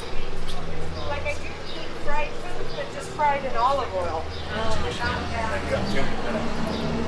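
A woman talks nearby as she passes.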